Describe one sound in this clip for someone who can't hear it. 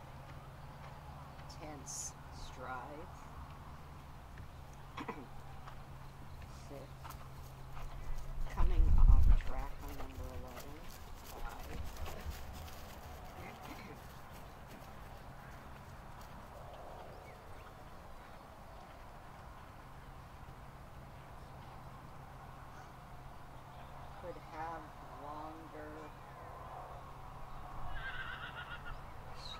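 A horse trots on grass with soft, muffled hoofbeats.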